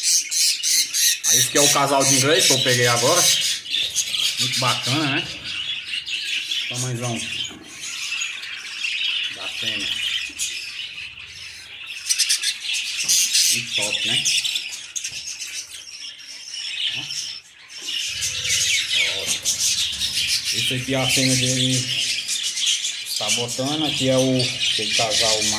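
Budgies chirp and chatter rapidly and continuously.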